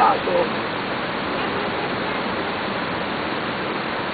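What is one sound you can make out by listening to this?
Water rushes down a stream in a steady roar.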